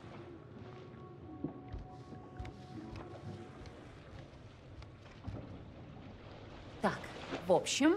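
Sea waves wash against a boat's hull.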